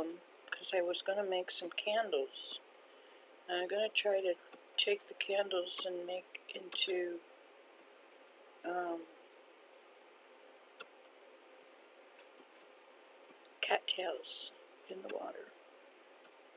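An elderly woman talks calmly and close to a microphone.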